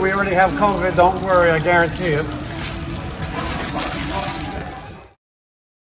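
Water runs from a tap and splashes into a basin.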